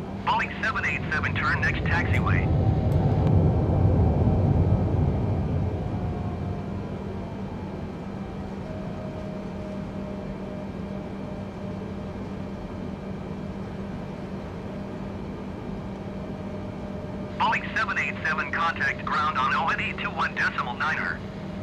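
Jet engines roar loudly, then settle to a steady hum.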